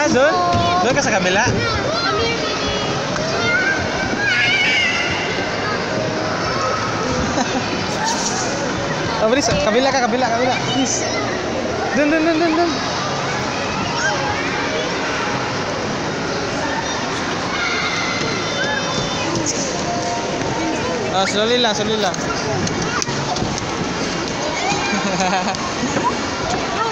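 Young children chatter and squeal nearby in a busy, echoing indoor space.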